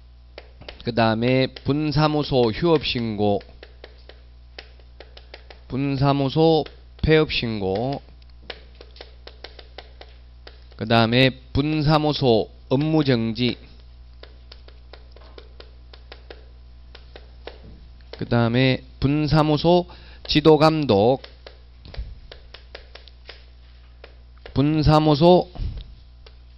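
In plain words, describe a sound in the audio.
A man lectures calmly through a microphone, in short bursts with pauses.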